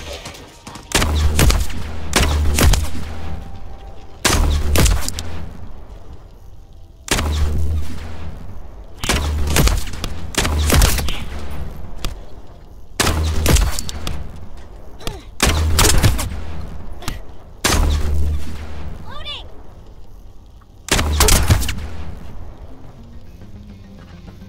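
Heavy sniper shots boom again and again, each one echoing away.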